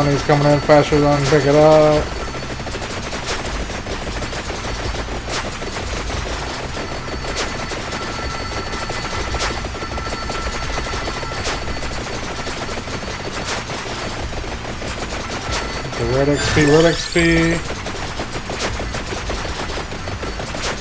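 Rapid video game sound effects crackle and chime steadily.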